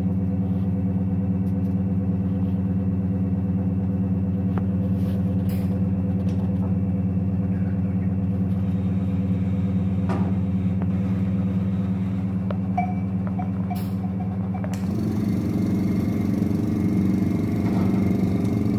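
A ventilation fan hums steadily.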